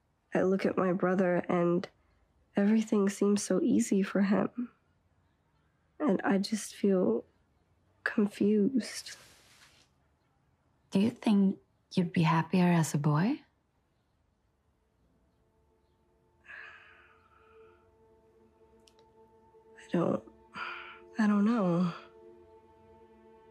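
A girl speaks softly and hesitantly close by.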